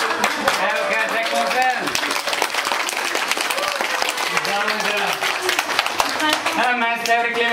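A group of people clap their hands in rhythm.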